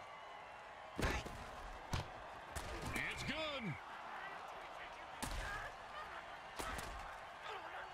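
Heavy thuds ring out as football players collide.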